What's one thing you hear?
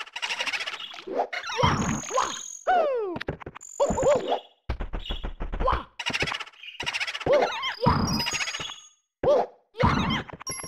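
Cartoonish video game sound effects chirp and whoosh in quick bursts.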